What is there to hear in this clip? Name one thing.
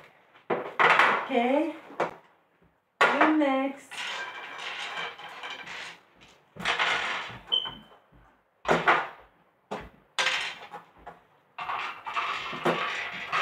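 Glass cups clink and slide on a glass table.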